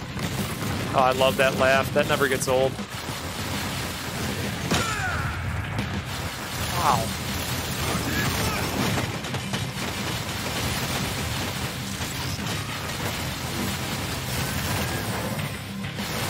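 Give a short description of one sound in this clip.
Explosions boom and crackle over and over in a game.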